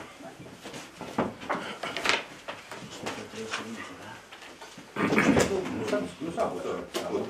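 A middle-aged man speaks calmly in a room.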